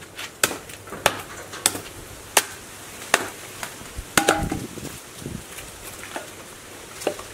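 A hammer strikes wood with sharp, repeated knocks.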